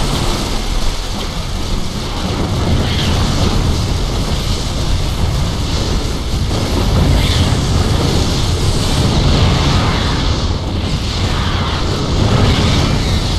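Laser weapons fire and zap in rapid bursts.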